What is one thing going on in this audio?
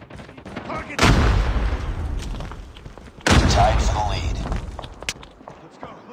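Explosions boom loudly and rumble away.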